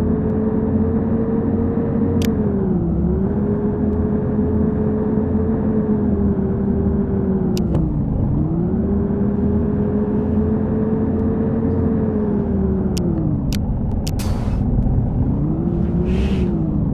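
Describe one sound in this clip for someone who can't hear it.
A bus engine hums steadily, its pitch dropping and rising as the bus shifts gears.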